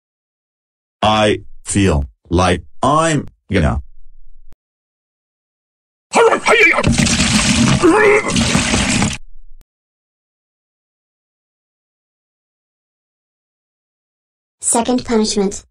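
A man's flat, computer-like voice speaks in short, pained bursts.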